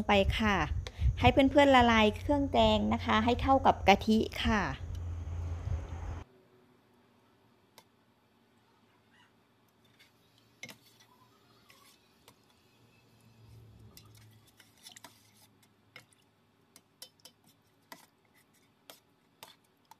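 A metal spoon scrapes and clinks against a steel pot.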